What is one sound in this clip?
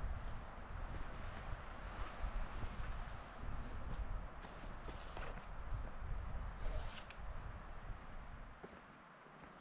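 Footsteps crunch on a forest floor of dry needles and cones.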